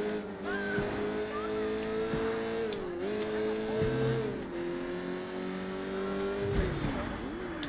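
A sports car engine hums steadily, its pitch rising and falling as it shifts gears.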